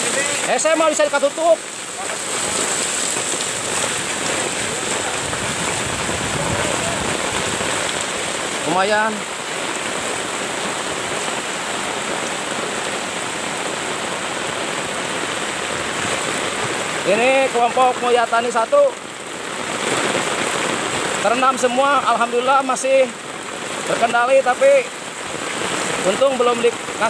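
Floodwater rushes and gurgles along.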